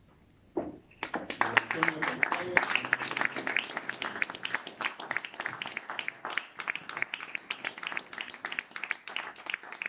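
A small audience applauds steadily in an echoing hall.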